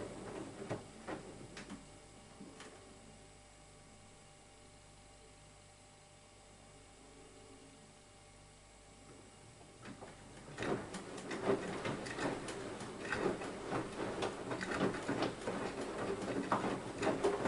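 A washing machine drum turns with a low hum.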